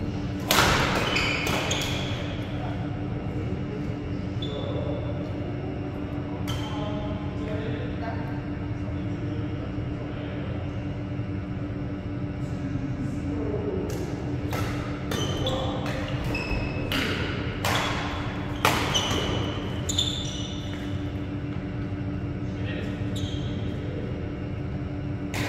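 Rackets strike a shuttlecock with sharp pops that echo through a large hall.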